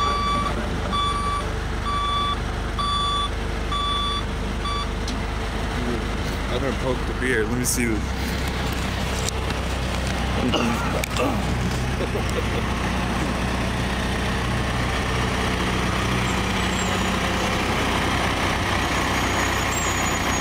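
An idling truck engine rumbles low and steady.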